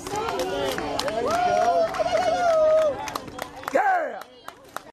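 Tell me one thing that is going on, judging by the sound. Young women cheer and shout outdoors.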